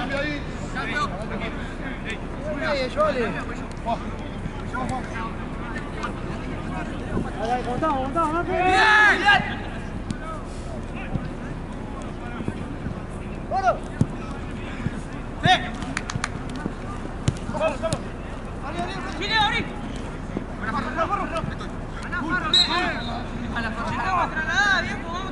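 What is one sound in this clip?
Young men shout and call out across an open outdoor pitch.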